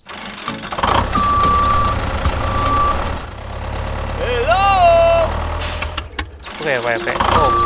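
A small toy tractor motor hums steadily.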